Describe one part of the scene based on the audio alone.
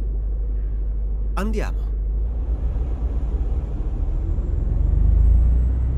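A truck engine rumbles low and steadily, growing louder toward the end.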